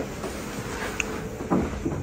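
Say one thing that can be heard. A door handle rattles as it turns.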